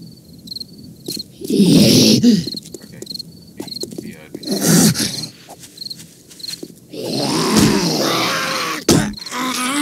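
A zombie growls and groans close by.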